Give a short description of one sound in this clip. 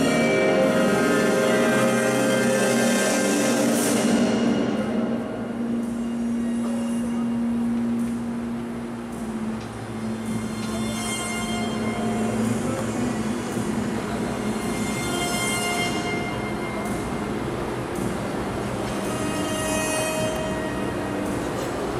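Ice skate blades scrape and hiss across the ice.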